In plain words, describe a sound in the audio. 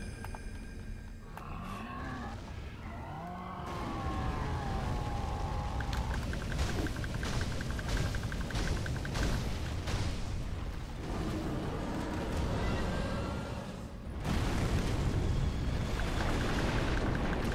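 A sword slashes and clangs in rapid blows.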